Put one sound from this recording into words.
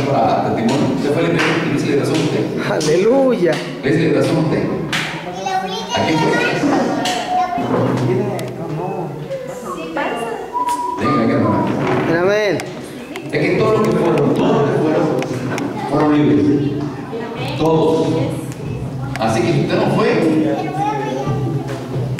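A middle-aged man speaks with animation through a microphone and loudspeakers in a room with some echo.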